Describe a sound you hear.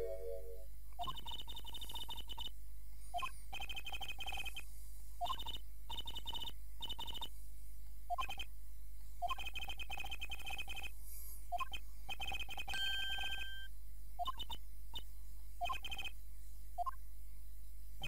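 Short electronic blips chatter rapidly in quick bursts.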